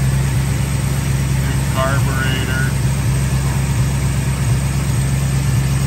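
A car engine idles with a steady, low rumble.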